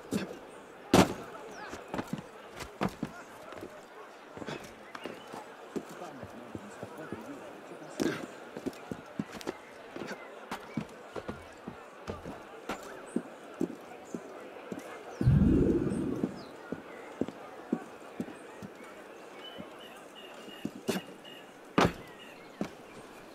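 Footsteps patter quickly across a roof.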